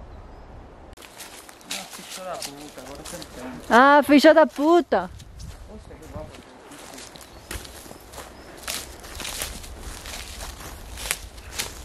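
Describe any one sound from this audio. Footsteps crunch on dry leaves and grass.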